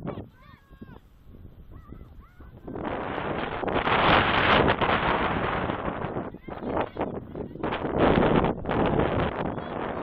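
Players call out faintly across an open field.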